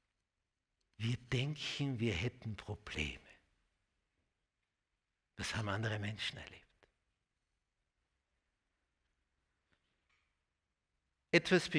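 An elderly man speaks calmly into a microphone with pauses.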